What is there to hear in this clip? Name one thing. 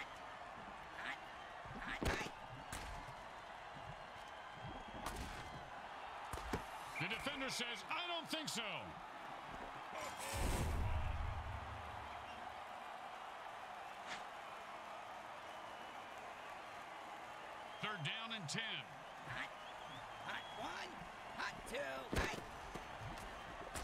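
Armoured players crash together in heavy tackles.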